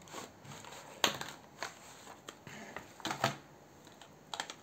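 Wax crayons clatter in a box.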